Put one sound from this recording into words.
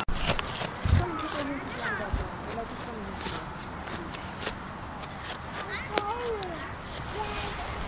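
A goat tears and chews grass close up.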